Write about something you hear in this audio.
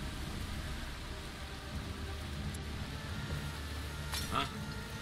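Tall grass rustles as someone creeps through it.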